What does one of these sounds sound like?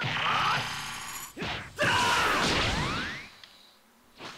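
An energy blast roars and whooshes.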